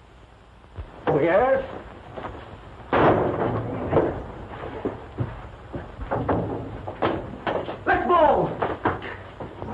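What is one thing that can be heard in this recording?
Men shout in a scuffle.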